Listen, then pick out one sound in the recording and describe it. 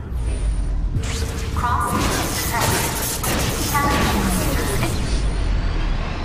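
An electric blast crackles and zaps.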